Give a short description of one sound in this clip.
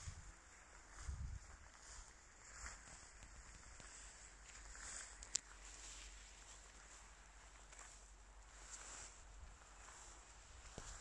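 Wind blows softly outdoors, rustling the grass.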